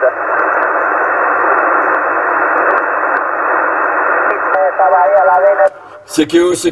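Loud radio static hisses steadily from a loudspeaker.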